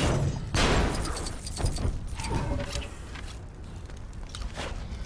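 Flames crackle and burn.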